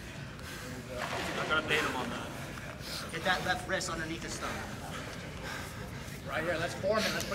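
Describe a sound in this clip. Men in the audience shout encouragement in a large echoing room.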